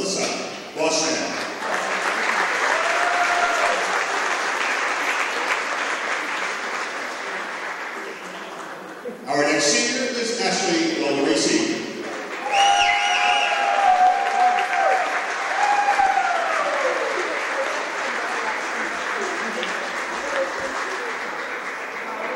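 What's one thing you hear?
A crowd applauds in a large echoing gym.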